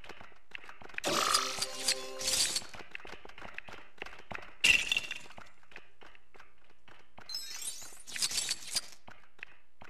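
Bright chimes and jingles ring out in short bursts.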